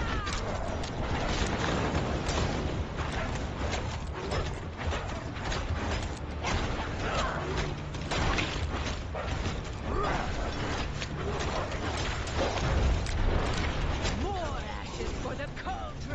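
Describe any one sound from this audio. Weapon blows strike a monster again and again in a game.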